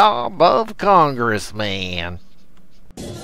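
An elderly man speaks sharply and expressively, close up.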